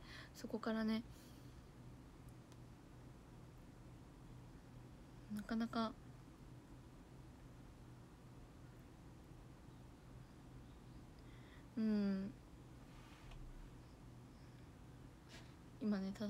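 A young woman speaks softly in short, drawn-out phrases close to a microphone.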